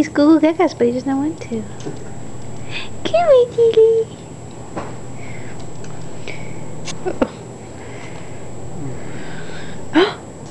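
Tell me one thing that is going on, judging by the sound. A baby coos and babbles up close.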